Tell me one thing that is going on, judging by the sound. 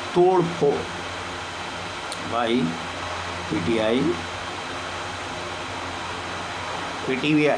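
An elderly man speaks slowly and calmly, close by, with pauses between short phrases.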